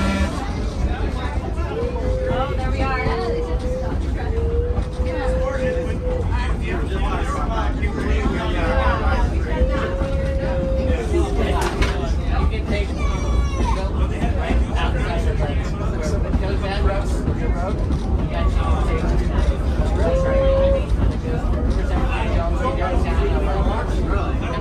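Adults talk with each other close by, chatting over the noise.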